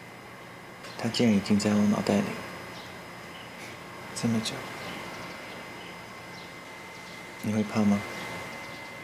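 A young man speaks softly and close.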